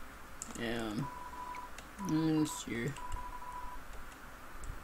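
Short beeping blips sound quickly as text types out.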